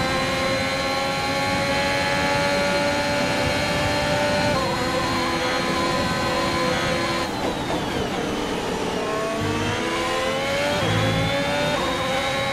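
A racing car engine screams at high revs, shifting gears.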